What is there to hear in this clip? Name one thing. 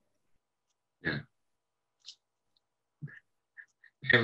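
A middle-aged man laughs softly over an online call.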